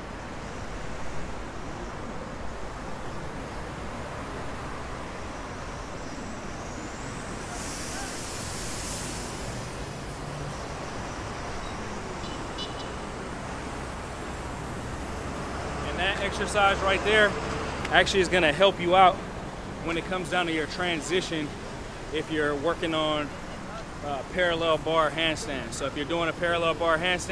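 Traffic hums steadily in the distance outdoors.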